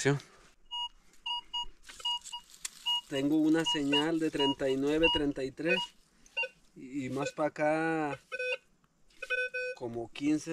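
A metal detector beeps in short, quick pulses.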